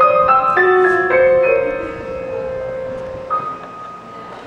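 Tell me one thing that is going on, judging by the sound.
A piano plays a few ringing notes.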